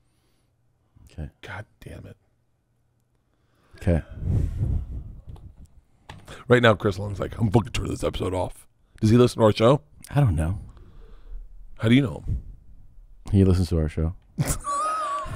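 A second man talks with animation into a close microphone.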